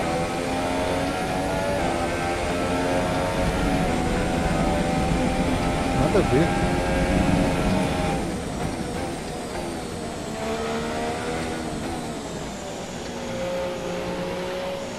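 A racing car engine roars loudly, revving up through the gears and dropping as it slows.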